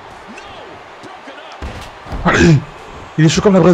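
A body slams down onto a wrestling mat with a heavy thud.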